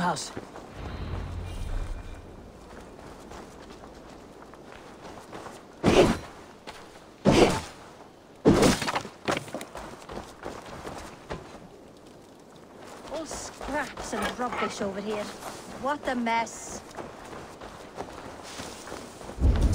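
Footsteps tread over soft ground.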